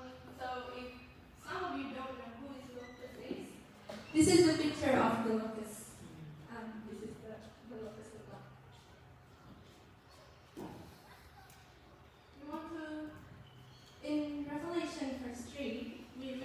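A young woman speaks with animation through a microphone in a large echoing hall.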